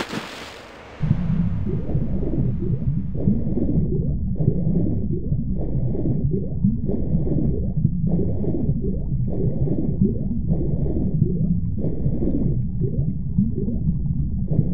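Muffled underwater swimming strokes swish in a steady rhythm.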